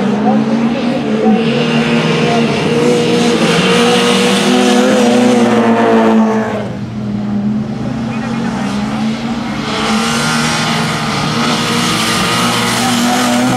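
A classic Mini race car's engine revs hard as the car passes close by.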